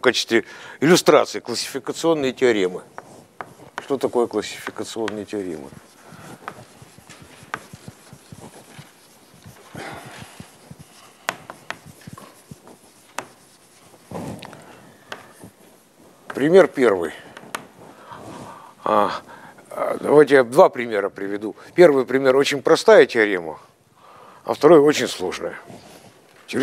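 An elderly man lectures calmly in an echoing hall.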